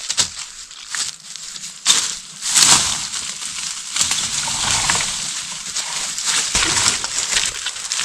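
Leaves and branches rustle and snap as someone pushes through undergrowth.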